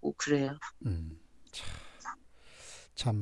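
A middle-aged woman talks cheerfully over an online call.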